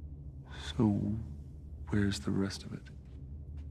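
A man asks a question calmly, heard up close.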